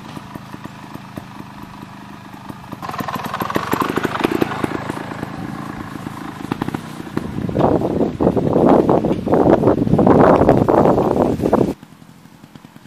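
A motorcycle engine idles and revs in loud bursts close by.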